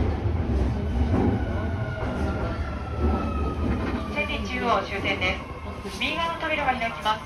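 Train brakes squeal with a slowly falling whine.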